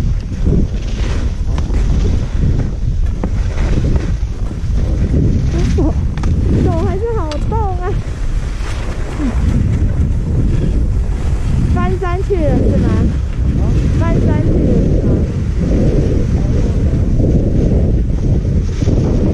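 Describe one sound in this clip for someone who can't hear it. Skis hiss and scrape over snow.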